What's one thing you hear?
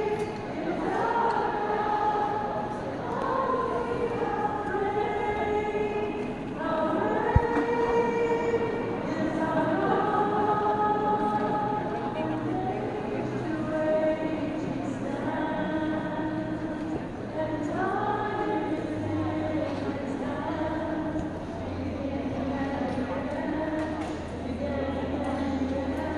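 A man speaks steadily over loudspeakers in a large echoing hall.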